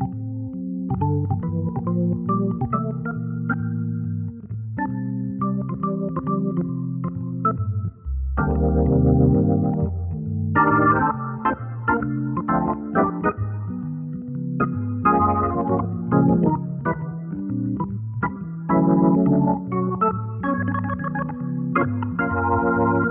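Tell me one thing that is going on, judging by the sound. A Hammond-style organ plays jazz chords and a melody.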